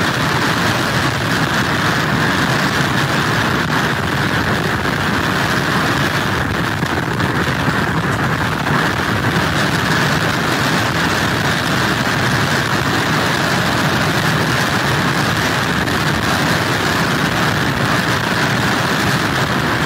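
Heavy surf crashes and roars against wooden pilings.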